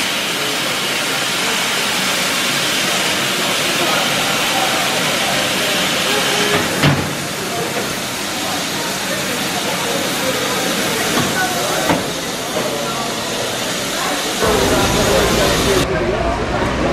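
A steam locomotive hisses steadily nearby.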